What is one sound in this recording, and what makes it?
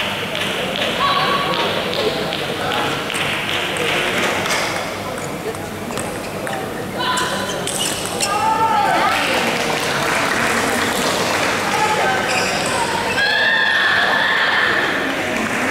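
Shoes squeak sharply on the floor.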